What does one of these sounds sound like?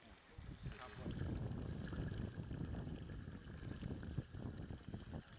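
Hot water trickles and gurgles down a shallow channel.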